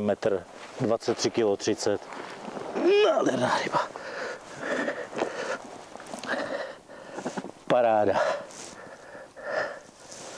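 A man talks calmly and cheerfully close by.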